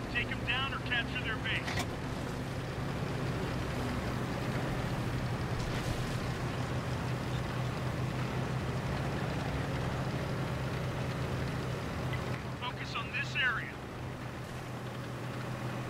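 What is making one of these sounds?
A tank engine rumbles as the tank drives.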